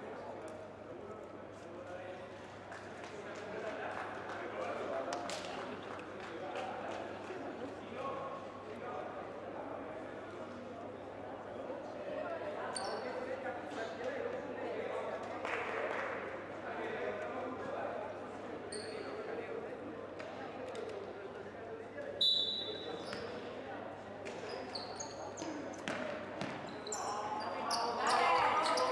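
Players call out to each other across an echoing hall.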